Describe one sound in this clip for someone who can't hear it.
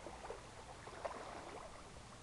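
A swimmer splashes through water close by.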